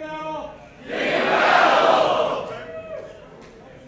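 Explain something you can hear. A crowd of soldiers shouts back in unison.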